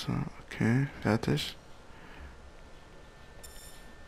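A short menu chime sounds as an option is selected.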